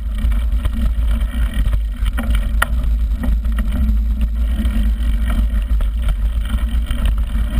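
Bicycle tyres rumble and crunch over a bumpy dirt trail.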